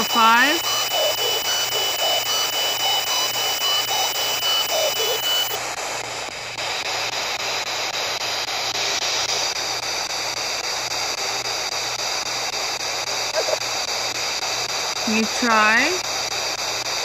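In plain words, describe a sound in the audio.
A radio scanner lets out brief warbling squeals through the static.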